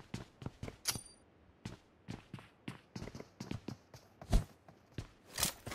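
Quick footsteps thud on hard ground.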